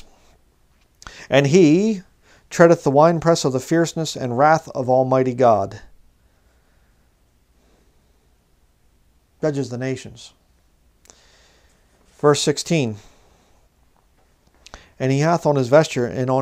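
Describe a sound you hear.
A man speaks calmly into a nearby microphone, reading out in short phrases with pauses.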